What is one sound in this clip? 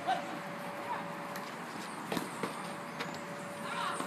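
A basketball hits a backboard.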